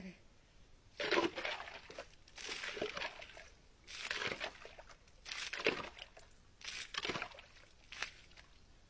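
Water splashes as a man scoops it up by hand.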